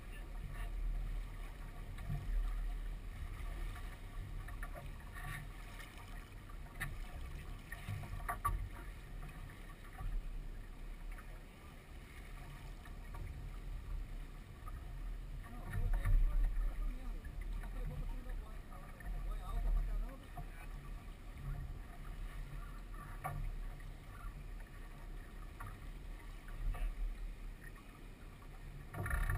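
Water splashes against a sailboat's hull.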